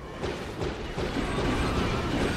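A weapon fires with a loud roaring burst.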